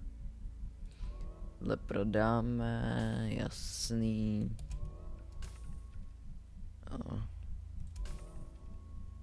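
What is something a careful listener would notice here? Short electronic menu clicks and chimes sound as items are selected and sold.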